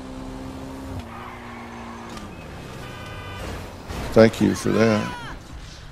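A motorcycle crashes with a loud thud.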